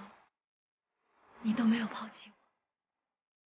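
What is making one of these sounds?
A young woman speaks softly and close.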